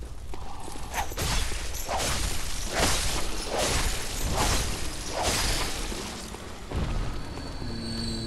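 Blades slash and strike in a close fight.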